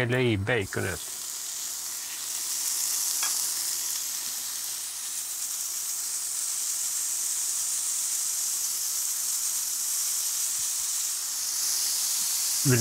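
Bacon sizzles and crackles in a hot pan.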